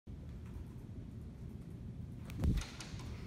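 Laptop keys click as a man types.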